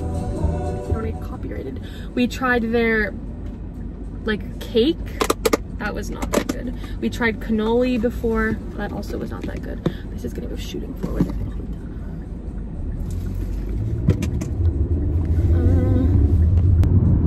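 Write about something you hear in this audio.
A young woman talks casually close to a microphone.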